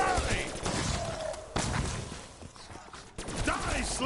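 Gunfire bursts out in quick shots.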